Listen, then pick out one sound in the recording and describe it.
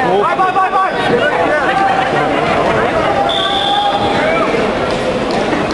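A crowd of men and women shouts and calls out loudly nearby.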